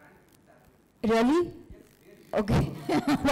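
A woman speaks loudly and calmly into a microphone, close by.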